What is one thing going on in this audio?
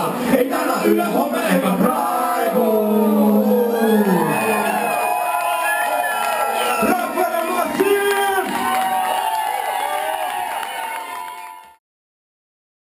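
Live music plays loudly through speakers.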